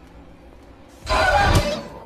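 A sudden loud, harsh screech blares out at close range.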